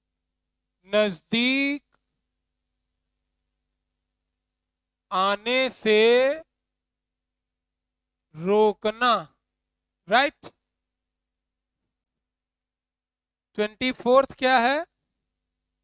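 A young man speaks in short phrases, calmly explaining.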